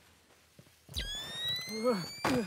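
A device switches on with a rising electronic whine.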